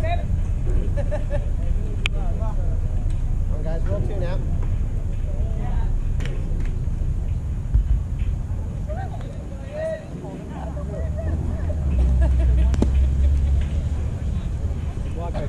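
Men shout and call out in the distance outdoors.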